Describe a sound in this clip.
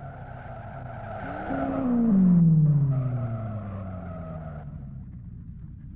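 Another car roars past and fades away.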